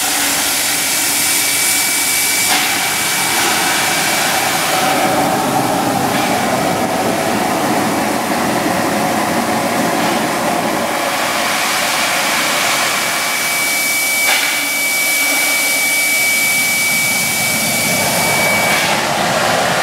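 A steam locomotive hisses loudly and steadily as steam escapes.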